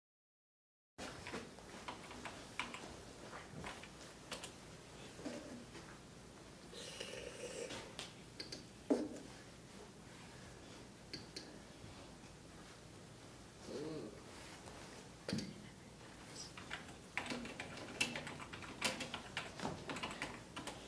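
Computer keys click and tap in quick, uneven bursts.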